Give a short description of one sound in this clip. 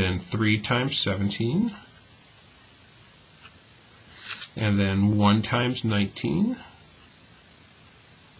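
A felt-tip pen scratches softly on paper.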